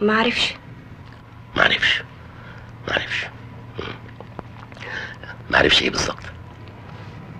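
A middle-aged man speaks earnestly, close by, in short bursts.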